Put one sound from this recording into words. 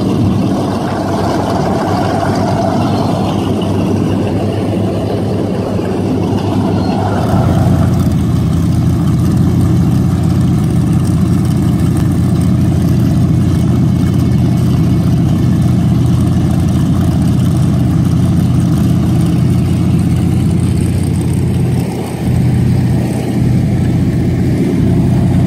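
A big boat engine idles with a deep, loud, rumbling burble throughout.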